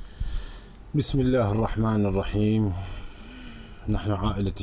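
A middle-aged man speaks over a phone line with a flat, slightly muffled sound.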